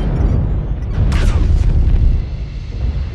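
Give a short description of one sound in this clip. Laser weapons fire with a sharp burst.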